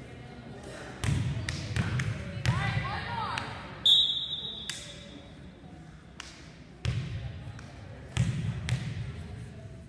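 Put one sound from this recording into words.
A volleyball is struck with sharp slaps in a large echoing gym.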